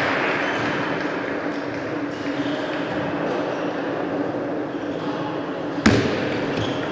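A ball clicks sharply off paddles and the table.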